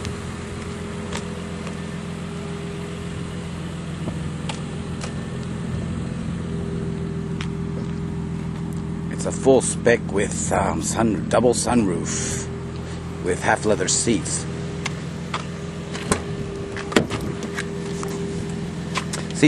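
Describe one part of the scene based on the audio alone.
A van's engine idles with a steady low hum.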